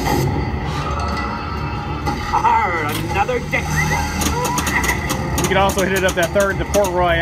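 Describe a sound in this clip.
A pinball machine plays loud electronic music and sound effects.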